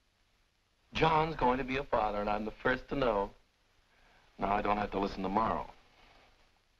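A man talks smoothly and directly, close by.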